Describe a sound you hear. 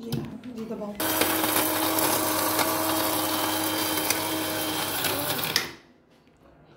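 An electric grinder whirs loudly and steadily.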